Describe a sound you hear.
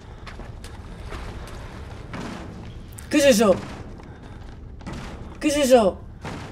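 A young woman speaks with animation into a close microphone, letting out loud, drawn-out frightened cries.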